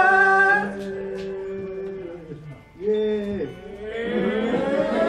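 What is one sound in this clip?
A woman sings slowly into a microphone, holding long notes.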